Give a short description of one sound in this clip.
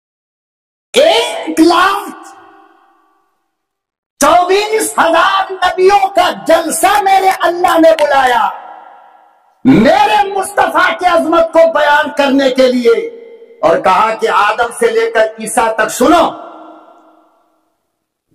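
An elderly man preaches forcefully into a microphone over a loudspeaker, with echo trailing his phrases.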